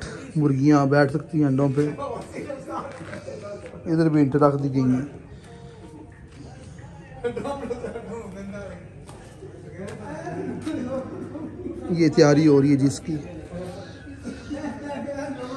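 A man speaks close by, explaining with animation.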